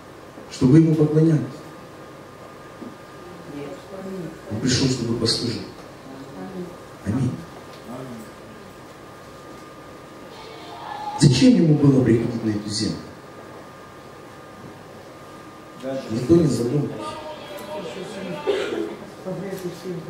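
A middle-aged man speaks calmly into a microphone in a room with slight echo, pausing between phrases.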